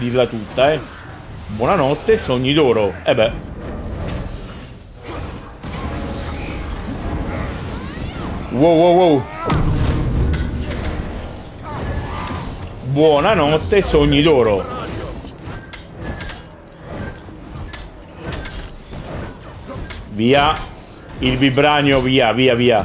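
Blows thud and clang in a fight.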